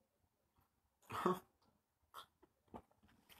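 A young man sips a drink and swallows.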